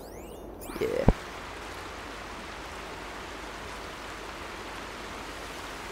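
Tall grass rustles as someone creeps through it.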